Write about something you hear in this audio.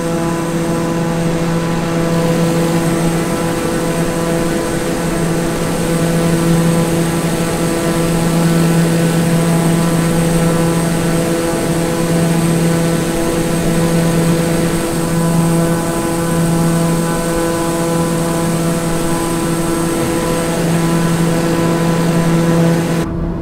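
A propeller engine drones steadily with a loud, even hum.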